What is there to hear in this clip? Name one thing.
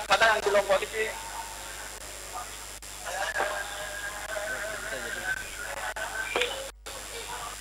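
A man speaks over a phone line.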